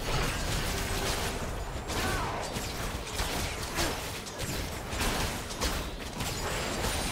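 Magic spell effects whoosh and crackle during a fast fight.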